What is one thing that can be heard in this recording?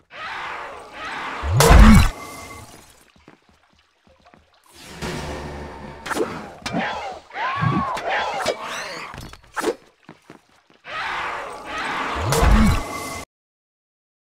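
Heavy thuds and whooshes of blows land in bursts.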